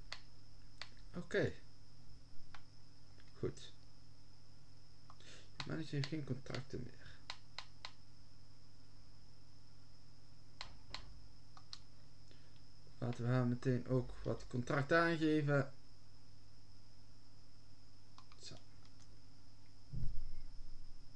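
Short menu clicks sound as selections change.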